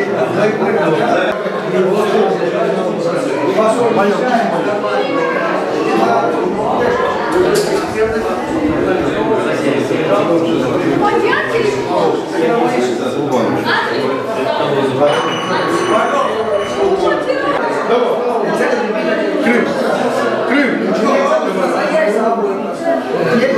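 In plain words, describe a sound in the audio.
A crowd of men chatter loudly all around.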